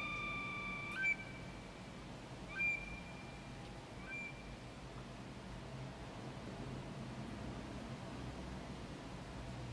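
Rain falls on wet paving outdoors.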